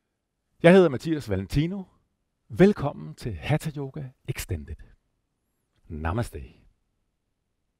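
A man speaks calmly and with warmth into a close microphone.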